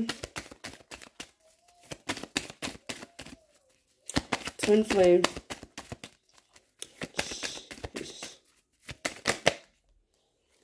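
Playing cards riffle and snap as a deck is shuffled close by.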